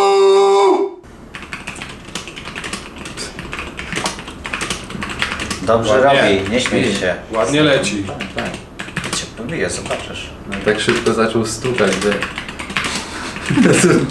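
Fast typing clatters on a mechanical keyboard.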